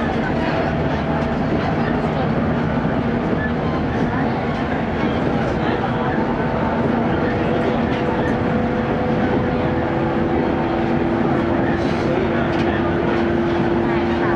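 A train rumbles steadily along the tracks, with wheels clattering on the rails.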